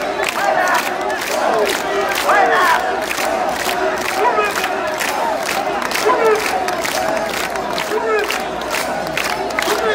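People clap hands in a rhythmic beat.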